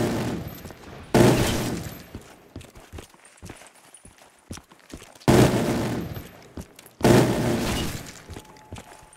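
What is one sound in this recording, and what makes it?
A gun fires loud booming blasts that echo and fade.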